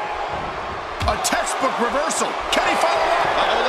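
Blows land with sharp slaps.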